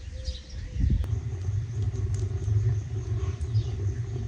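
A wood fire roars and crackles in a stove.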